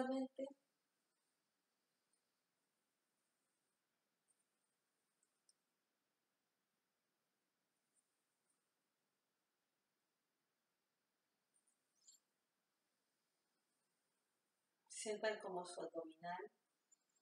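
A woman speaks softly and calmly, close by.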